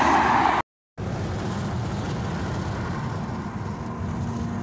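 A car's engine and tyres drone steadily from inside the cabin.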